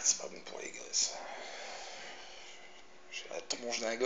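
A man exhales with a long breath.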